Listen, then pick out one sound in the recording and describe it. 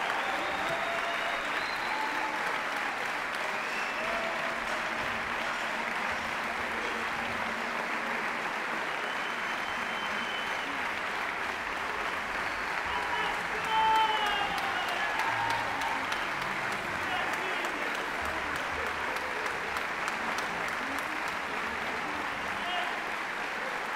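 A large orchestra plays loudly in a big echoing hall.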